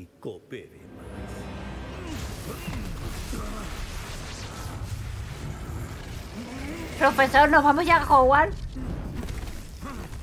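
A magic blast roars and crackles.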